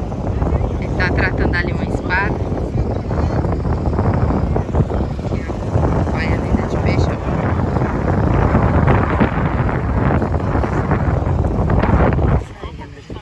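Strong wind blusters outdoors.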